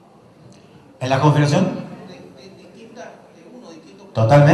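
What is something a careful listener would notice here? A man in an audience speaks up loudly.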